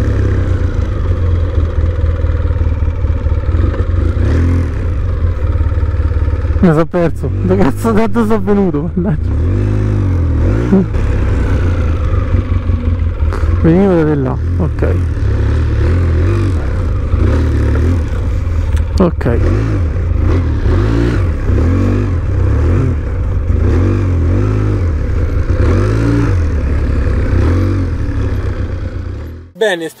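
An all-terrain vehicle engine rumbles steadily close by, revving now and then.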